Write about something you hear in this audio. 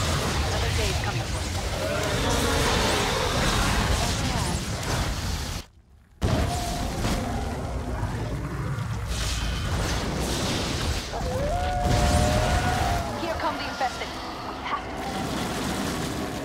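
Battle sounds rumble and clash throughout.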